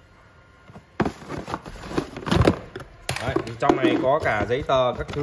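A cardboard box flap scrapes and thumps.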